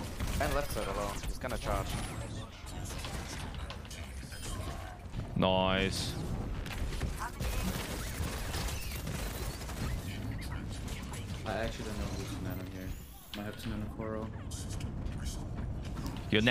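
Rapid gunfire rattles in a video game battle.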